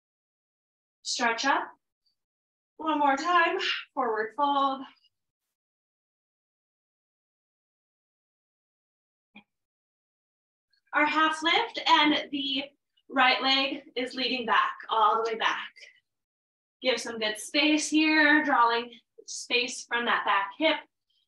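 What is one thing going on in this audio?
A woman speaks calmly into a microphone, giving instructions in pauses.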